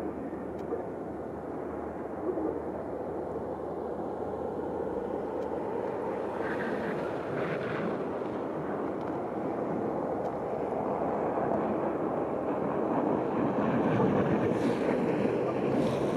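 A jet airliner's engines roar steadily as it taxis, slowly growing louder.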